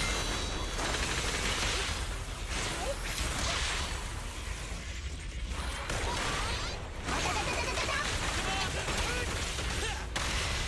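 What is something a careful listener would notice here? Electric blasts crackle and burst.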